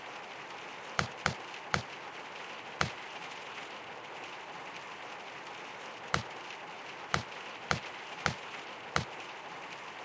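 Short clicks sound as puzzle tiles snap into place.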